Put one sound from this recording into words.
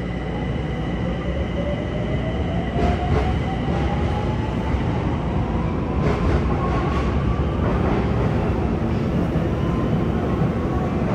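A train's motor whines, rising slowly in pitch.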